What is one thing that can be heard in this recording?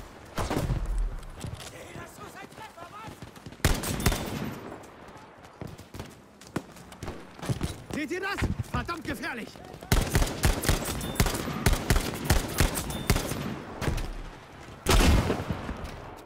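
Distant gunfire and blasts rumble across an open battlefield.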